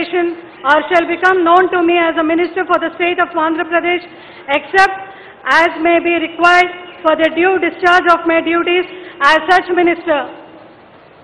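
A woman speaks into a microphone in a clear, formal voice, heard through a loudspeaker.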